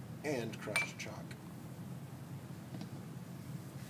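Glass clinks softly as a glass cylinder is set down.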